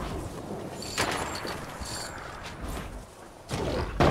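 A pickaxe swings and thuds.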